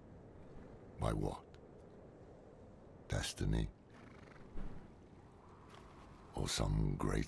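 A man speaks close to a microphone in short bursts.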